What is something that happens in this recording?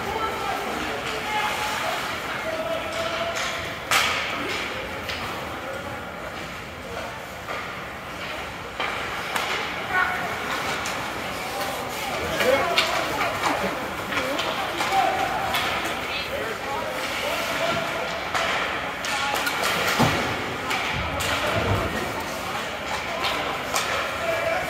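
Spectators murmur and call out in a large echoing arena.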